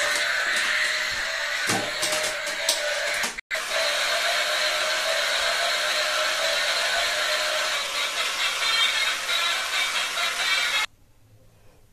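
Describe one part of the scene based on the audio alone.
A toy car's electric motor whirs loudly as it drives across a hard floor.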